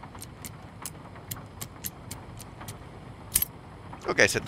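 A combination lock's dials click as they turn.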